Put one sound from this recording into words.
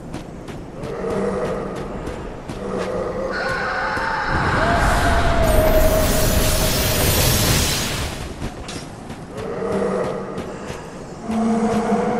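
Armoured footsteps crunch over rough ground.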